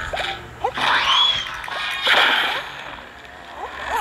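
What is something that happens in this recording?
A jalapeno burst roars across a row of zombies.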